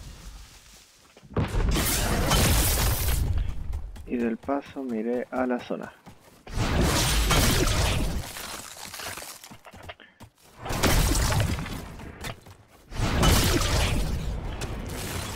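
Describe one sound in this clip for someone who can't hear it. Footsteps run over snow and wooden boards.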